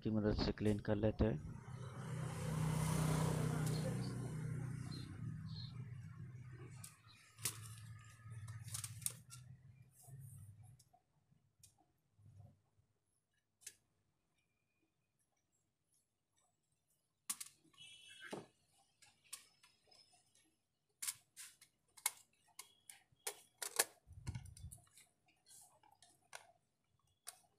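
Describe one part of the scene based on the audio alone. Small plastic parts click and tap as a lamp is taken apart and put back together by hand.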